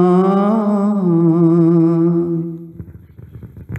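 A man sings a long, wavering note.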